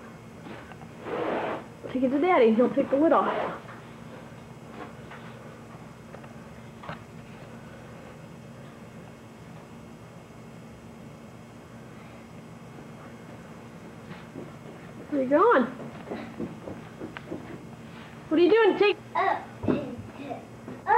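A young child talks and squeals close by, in bursts.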